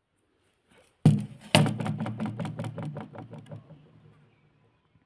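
A small metal bolt clatters and bounces on a hard floor, quickly settling.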